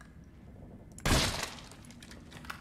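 A gunshot rings out once with a short echo.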